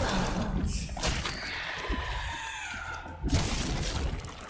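A gun fires a few loud shots.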